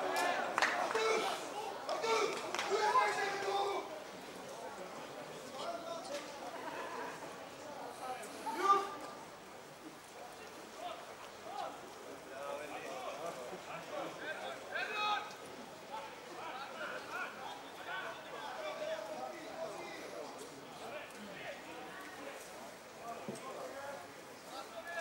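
Men talk casually close by.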